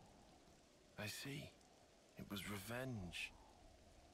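A young man speaks quietly and hesitantly, close by.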